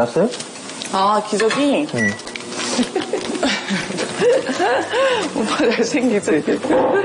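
A woman talks and laughs nearby.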